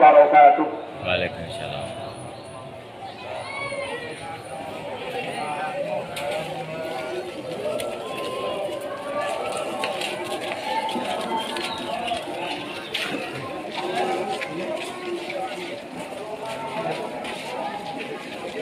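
A large crowd of people chatters outdoors.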